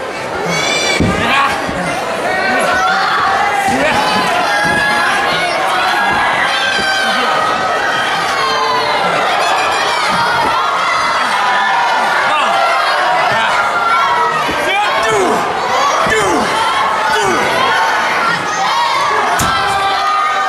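Bodies thump on a wrestling ring mat.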